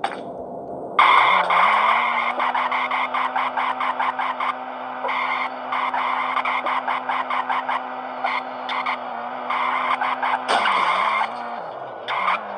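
A small motor hums steadily, with a whine that rises as it speeds up.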